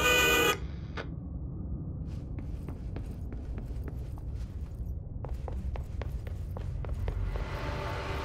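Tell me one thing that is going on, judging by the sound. Footsteps walk across a wooden floor.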